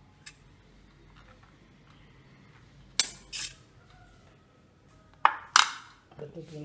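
A metal spoon clinks and scrapes against a steel bowl.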